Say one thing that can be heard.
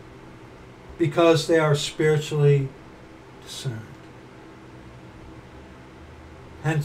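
A middle-aged man speaks casually and close to a microphone.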